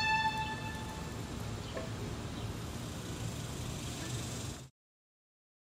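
A violin plays a long held note, bowed close by.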